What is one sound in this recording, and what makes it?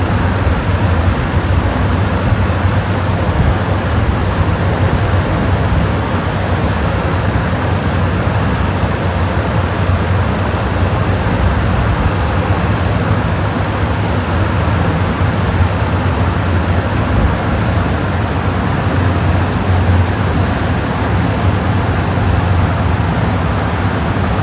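Several electric fans whir and hum steadily, with a low rumbling wind blowing across the microphone.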